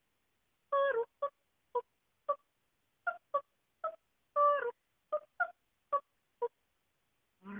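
An animal gives quick, short, high-pitched yelps close by.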